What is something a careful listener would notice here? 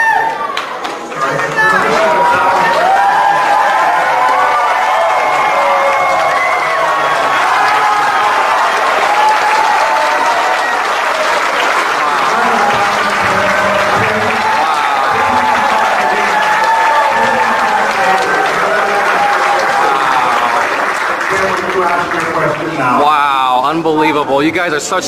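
A crowd of men and women shout and chant loudly.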